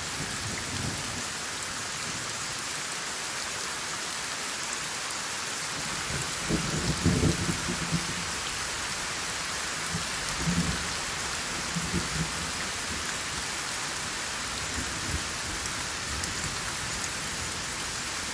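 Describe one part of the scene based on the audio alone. Rain falls steadily in a soft, even hiss.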